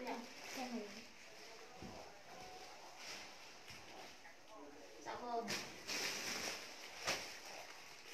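Clothes rustle as they are handled.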